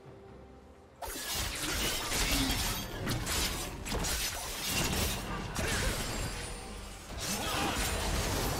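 Spell effects whoosh and crackle in a fast fight.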